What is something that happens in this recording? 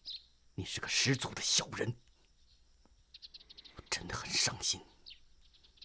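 A young man speaks angrily, close by.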